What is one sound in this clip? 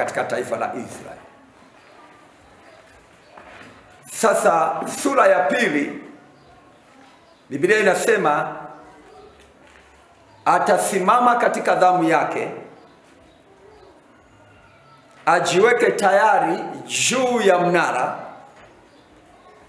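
A middle-aged man speaks with feeling in short bursts, separated by pauses, heard close.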